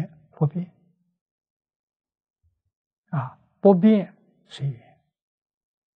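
An elderly man speaks calmly into a clip-on microphone, in short phrases with pauses.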